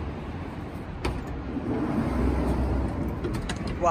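A van's sliding door rolls open.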